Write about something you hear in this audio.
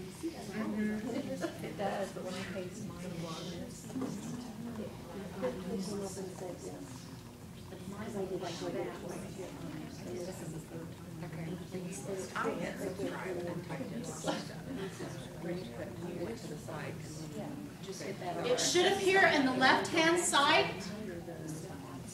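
Several adults talk quietly in an indoor room.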